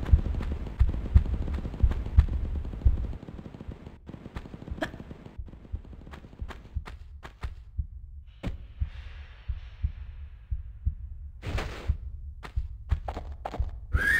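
Footsteps thud steadily on hard ground.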